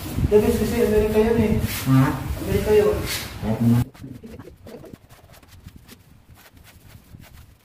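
A paint roller rolls softly across a ceiling with faint sticky rasping.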